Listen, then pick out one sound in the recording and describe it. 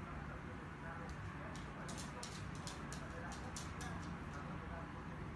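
A dog's claws click on a hardwood floor.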